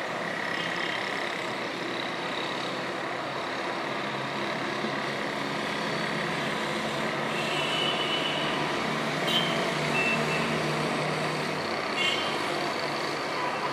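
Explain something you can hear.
Distant city traffic hums steadily.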